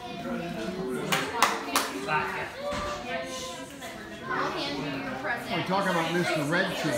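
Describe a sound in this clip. A small group of adults and children talk with animation close by.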